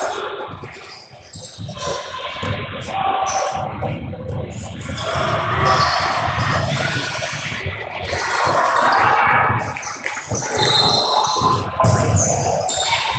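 Spectators chatter and call out in a large echoing hall.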